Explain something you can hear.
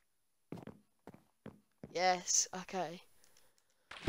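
Footsteps tap lightly on wooden boards.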